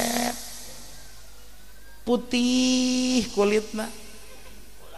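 An elderly man speaks through a microphone in a drawn-out, chanting voice, heard over loudspeakers.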